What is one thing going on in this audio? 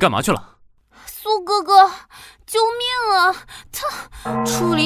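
A young woman pleads in a whiny, tearful voice nearby.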